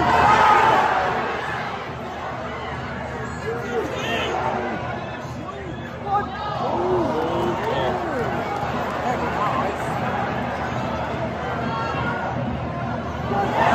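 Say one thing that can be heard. A large football crowd murmurs and chants in an open stadium.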